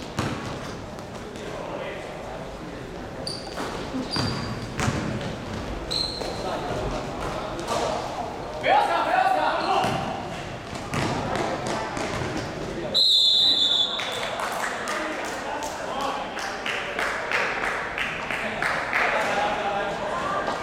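Players shout and call out across a large echoing hall.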